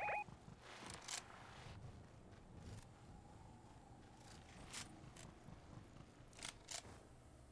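Footsteps swish quickly through grass.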